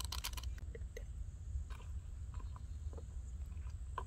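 A spoon scrapes and clinks inside a metal pot.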